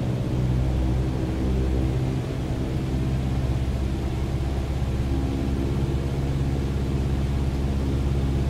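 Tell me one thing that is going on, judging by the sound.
A single-engine piston airplane engine runs, heard from the cockpit.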